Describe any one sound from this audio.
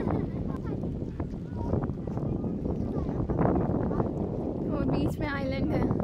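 Small waves lap on the water.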